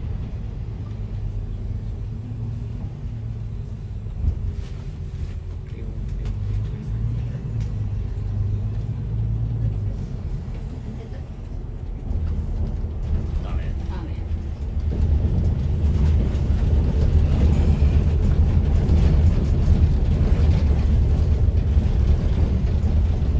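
A bus engine hums low and steady from inside the cabin.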